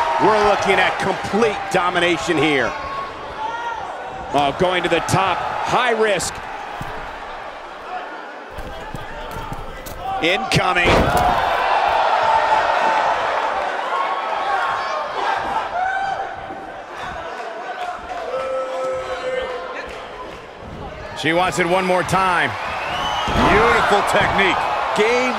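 A crowd cheers and murmurs throughout in a large arena.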